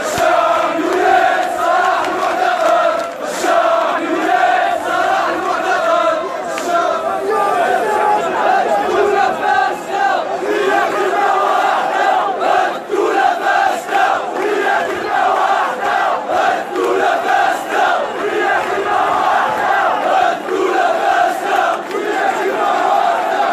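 Many people in a crowd clap along.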